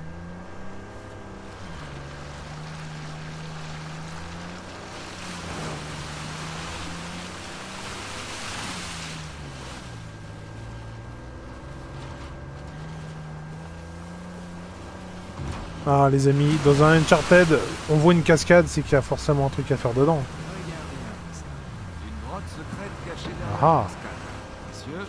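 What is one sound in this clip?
A vehicle engine hums steadily, rising and falling in pitch.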